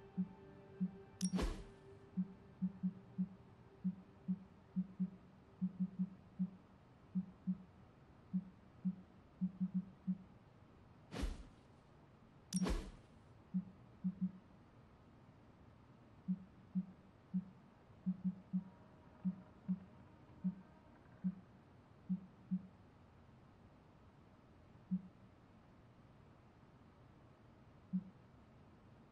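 Soft menu clicks tick again and again at an uneven pace.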